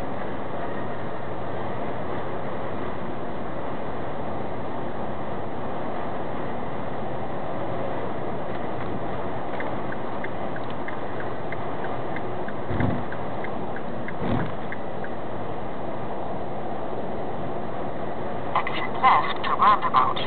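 A car engine and tyres hum steadily from inside a moving car.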